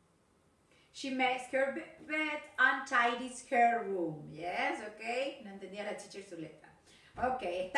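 A woman speaks clearly and with animation, close to a microphone.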